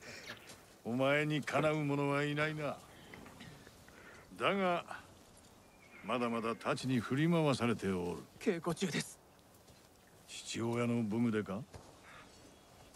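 An older man speaks calmly.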